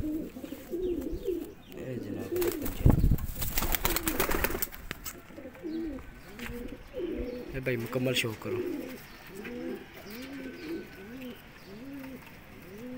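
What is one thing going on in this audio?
Pigeons coo softly and steadily nearby.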